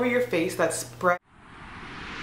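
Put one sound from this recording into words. A young woman talks close up.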